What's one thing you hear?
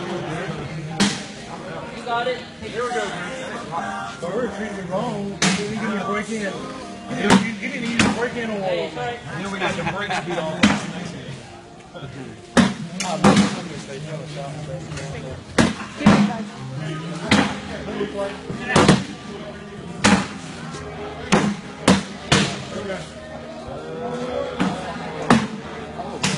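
Beanbags thump onto a wooden board.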